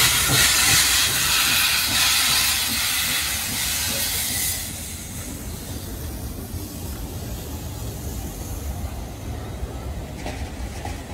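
A steam locomotive rumbles slowly past on the rails.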